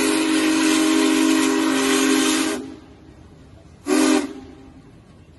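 A steam locomotive whistle blows loudly, then gives a short second blast.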